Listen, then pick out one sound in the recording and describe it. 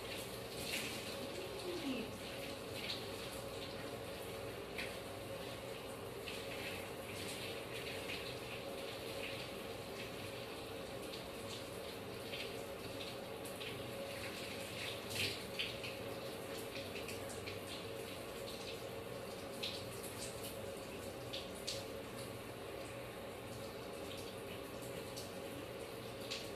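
Hands scrub and squish wet, shampoo-lathered hair.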